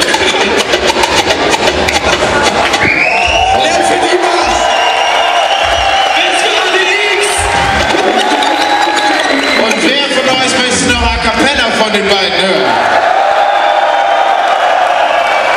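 A crowd cheers and screams loudly in a large echoing hall.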